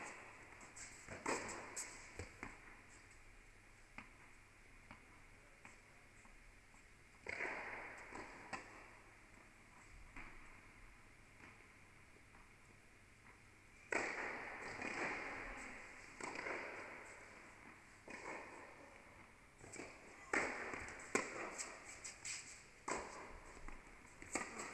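A tennis ball pops off rackets and bounces on a hard court in a large echoing hall.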